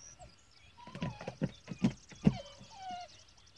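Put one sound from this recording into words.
Water splashes in a pond outdoors.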